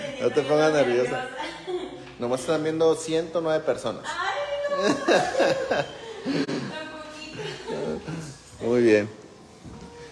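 A young woman talks loudly and with animation close by.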